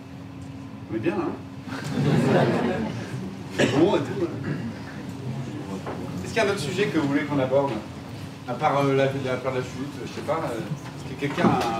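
A young man speaks to an audience through a microphone and loudspeakers.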